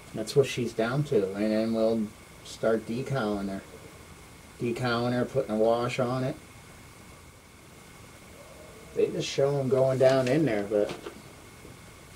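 An older man talks calmly, close by.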